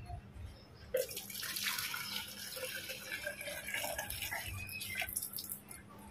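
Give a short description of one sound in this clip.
Liquid pours and splashes inside a plastic shell.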